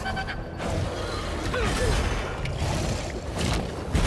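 A huge reptile roars and growls.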